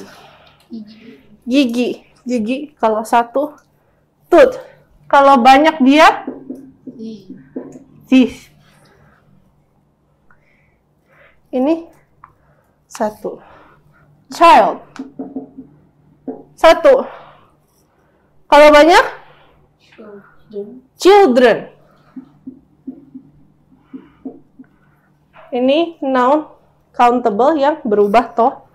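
A young woman speaks calmly and clearly, as if teaching, close by.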